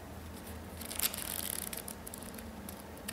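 A booklet's pages flip quickly.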